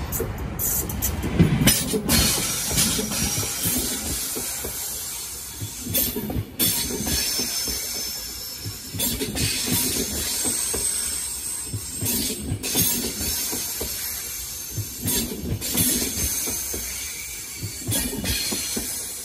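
An electric locomotive hauling double-deck passenger coaches rushes past.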